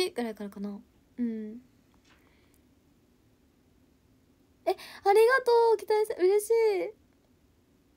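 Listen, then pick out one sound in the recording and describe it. A young woman speaks softly and playfully close to a microphone.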